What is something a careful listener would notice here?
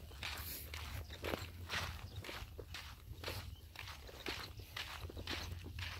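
A child's footsteps crunch on dry dirt.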